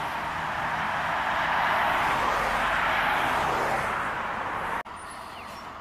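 A car drives past with a tyre hiss that swells and fades.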